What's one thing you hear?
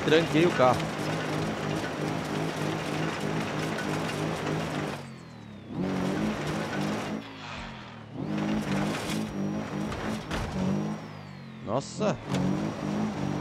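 Tyres skid and crunch over gravel.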